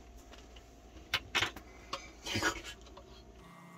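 A plastic device clicks and rattles as it is handled.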